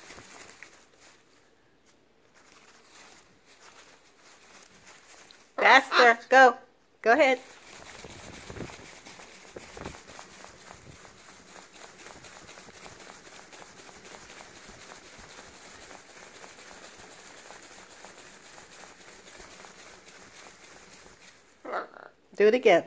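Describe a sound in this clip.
A parrot's wings flap and flutter close by.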